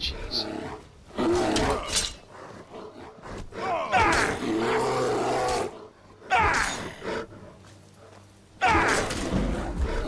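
A bear growls and roars loudly at close range.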